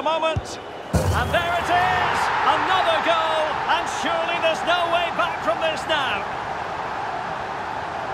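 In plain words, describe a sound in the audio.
A large crowd suddenly roars and cheers.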